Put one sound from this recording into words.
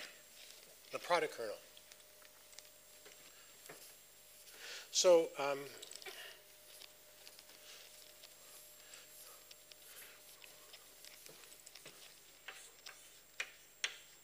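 A sponge wipes across a chalkboard.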